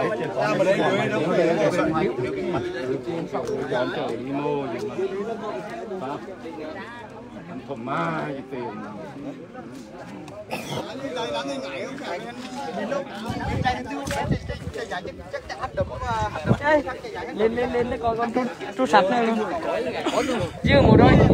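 A crowd of men and boys talks and chatters close by, outdoors.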